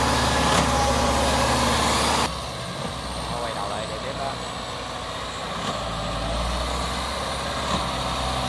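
The engine of a tracked farm carrier drones as it crawls through mud.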